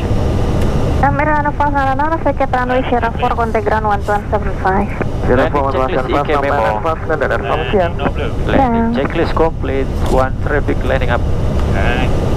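A man speaks calmly over a headset radio.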